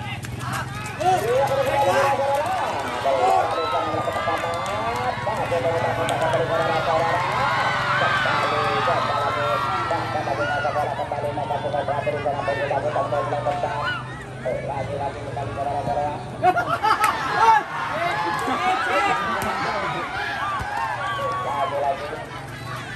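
A crowd of spectators shouts and cheers loudly outdoors.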